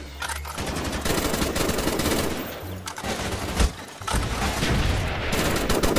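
A rifle fires rapid, loud bursts of gunshots.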